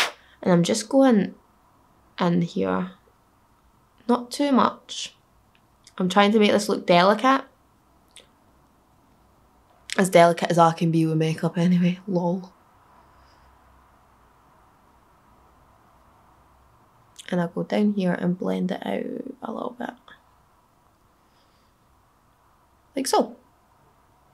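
A young woman talks calmly and close to the microphone, in short bursts.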